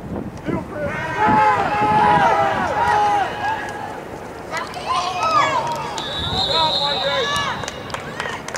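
Spectators and players shout and cheer across an open field.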